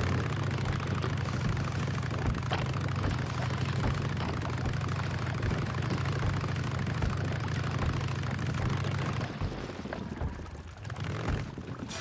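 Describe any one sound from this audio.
Tyres clatter over loose wooden planks.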